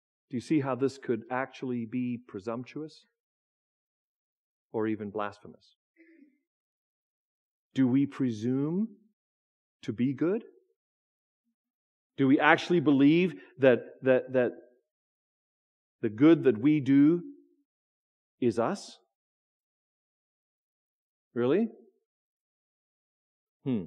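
A man speaks with emphasis into a microphone, in short bursts with pauses.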